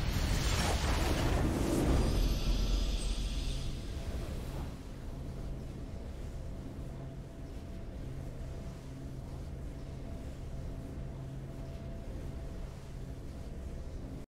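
A triumphant game fanfare plays and settles into a soft, steady hum.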